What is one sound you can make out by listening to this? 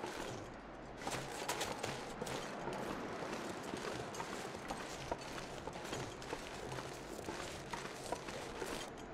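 Footsteps crunch through deep snow at a steady walking pace.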